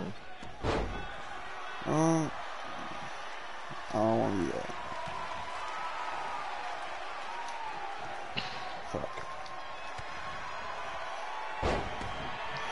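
Bodies slam hard onto a wrestling mat.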